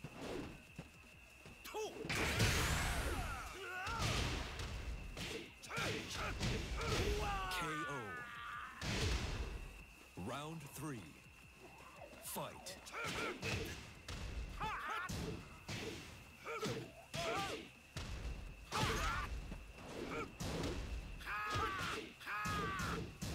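Punches and kicks land with sharp thuds and cracks.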